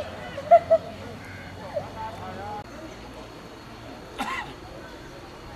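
A man speaks to a crowd outdoors, heard from a distance.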